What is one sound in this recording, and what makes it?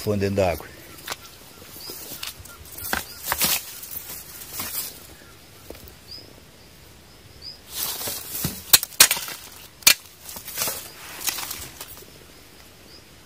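Grass and leaves rustle and brush close by.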